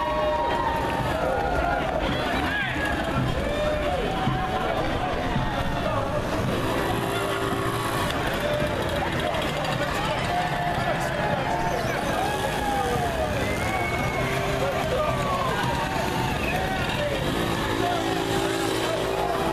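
Small motorbike engines buzz and putter past close by.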